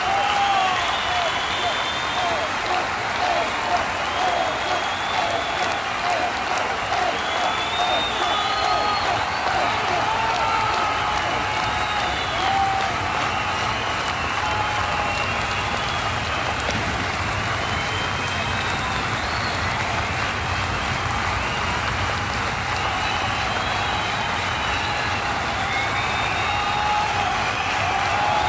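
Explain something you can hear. Women sing together into microphones, loud and lively.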